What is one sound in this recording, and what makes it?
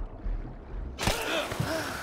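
Water splashes and drips as a swimmer climbs out.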